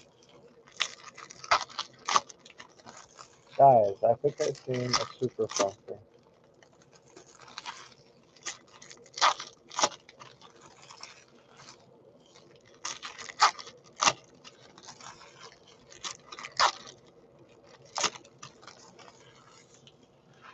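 A foil wrapper crinkles and tears in someone's hands.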